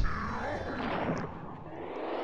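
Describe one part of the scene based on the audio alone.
A burst of flame whooshes and roars.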